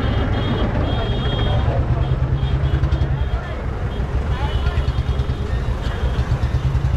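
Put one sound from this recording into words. A tractor engine chugs loudly close by.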